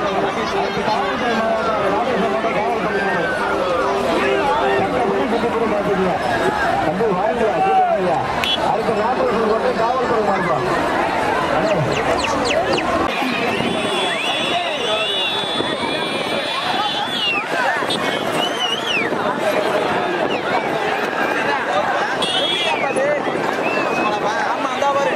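A large crowd shouts and cheers loudly outdoors.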